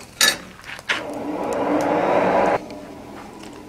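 A forge fire roars.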